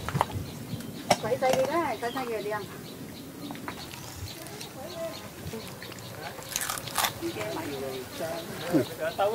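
A metal tool digs and scrapes in wet mud.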